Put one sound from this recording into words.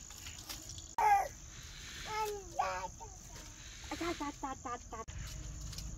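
A toddler babbles and calls out nearby.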